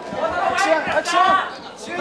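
Gloved punches thud and slap against a body.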